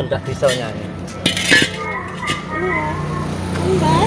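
A metal gas cylinder thuds down onto concrete.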